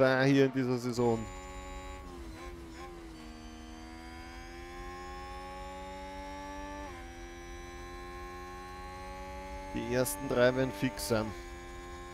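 A racing car engine whines steadily at high revs, its pitch shifting with gear changes.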